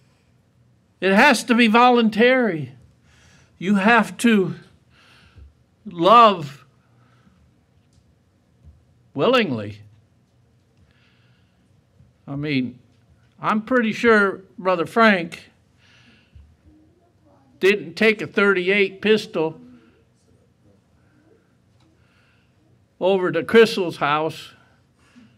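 An elderly man preaches forcefully through a microphone, in bursts with pauses between.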